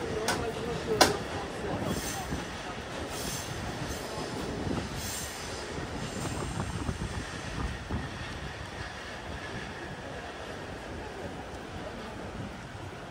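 A bus engine idles nearby with a low, steady rumble.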